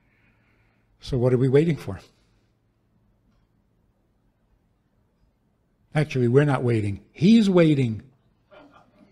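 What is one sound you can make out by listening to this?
An elderly man speaks with feeling into a microphone, in short phrases with long pauses.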